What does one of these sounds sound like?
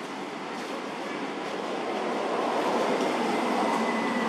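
A young monkey rustles dry leaves.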